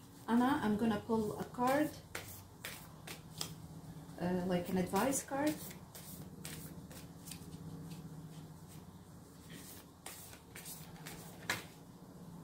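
Playing cards riffle and slap as they are shuffled.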